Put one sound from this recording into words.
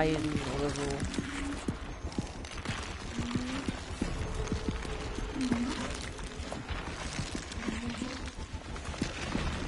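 Footsteps shuffle softly on a hard floor.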